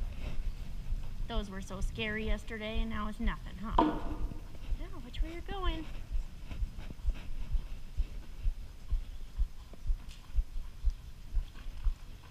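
A horse's hooves thud steadily on soft sand.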